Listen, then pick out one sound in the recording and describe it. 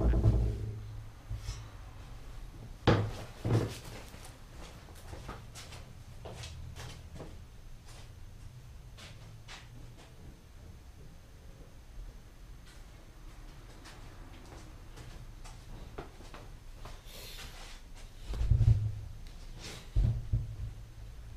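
Knocks and clatters sound nearby.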